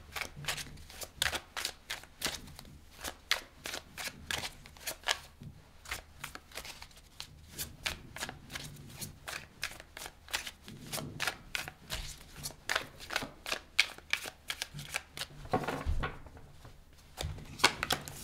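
Cards are shuffled with crisp, rapid flicks close by.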